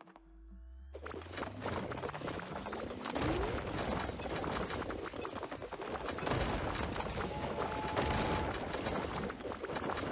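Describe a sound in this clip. Rubble crumbles and clatters loudly without pause.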